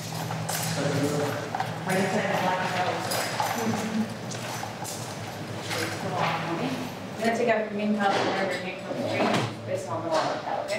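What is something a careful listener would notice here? A woman speaks calmly, giving instructions close by.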